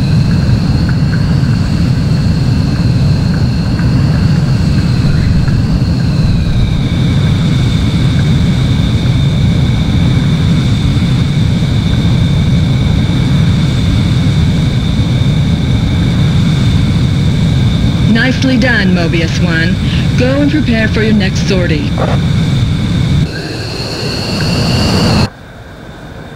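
A jet engine roars and whines steadily, then fades.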